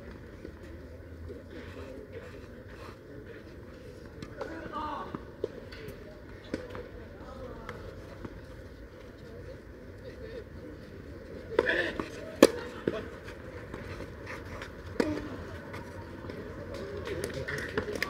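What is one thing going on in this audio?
Players' shoes scuff and slide on clay.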